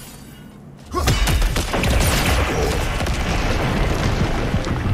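Ice chunks crumble and tumble down.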